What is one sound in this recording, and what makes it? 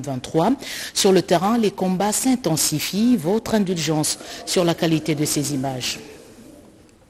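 A young woman speaks clearly and steadily into a microphone, reading out.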